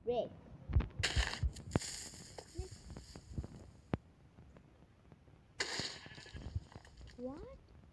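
A flint strikes and a fire whooshes and hisses.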